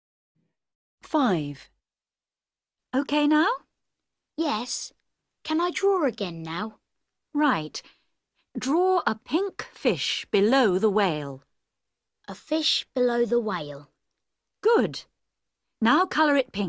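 A woman speaks clearly and slowly through an online call, in short phrases with pauses.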